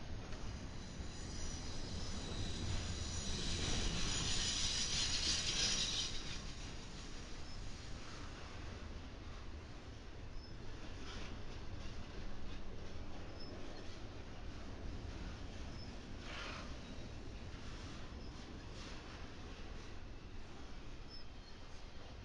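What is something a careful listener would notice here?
Steel wheels clatter and squeal over the rail joints.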